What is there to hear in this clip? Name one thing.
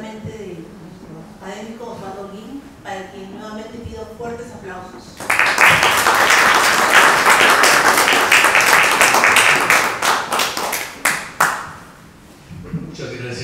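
A woman speaks calmly into a microphone, heard through a loudspeaker in a hall.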